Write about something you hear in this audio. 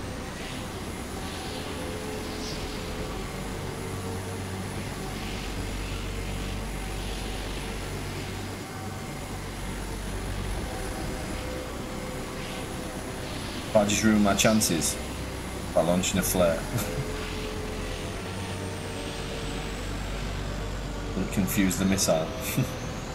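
A jet engine drones steadily.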